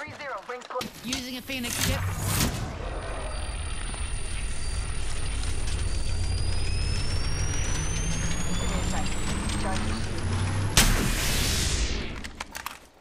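An electric charging device hums with a steadily rising whine, then bursts with a whoosh.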